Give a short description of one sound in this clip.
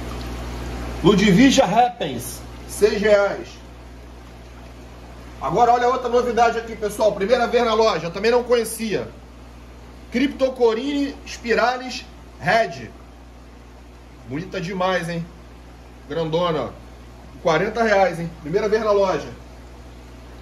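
A middle-aged man talks calmly in short bursts, close to the microphone.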